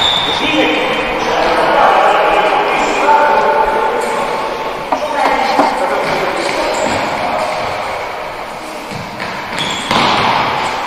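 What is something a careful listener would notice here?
Young boys shout to each other in a large echoing hall.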